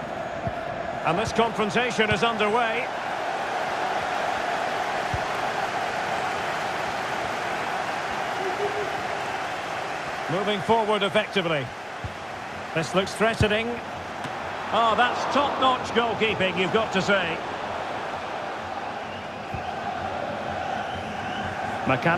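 A large stadium crowd murmurs and roars steadily throughout.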